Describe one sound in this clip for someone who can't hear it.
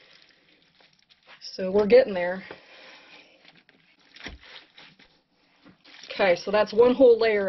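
Hands rustle and squelch through damp shredded paper and compost.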